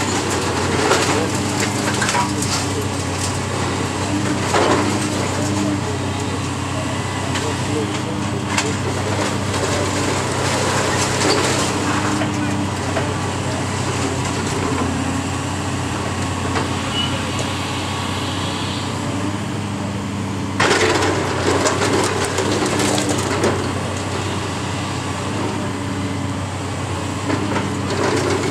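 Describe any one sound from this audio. A heavy excavator engine hums and drones steadily.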